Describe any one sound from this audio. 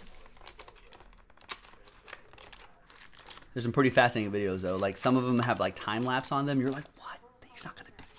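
Cardboard packs rustle and slide as they are handled.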